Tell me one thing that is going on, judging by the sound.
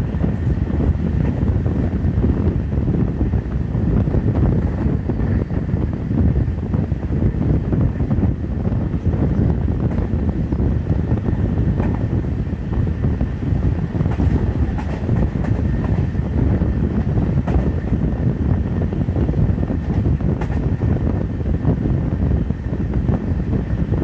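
Wheels clatter over rail joints.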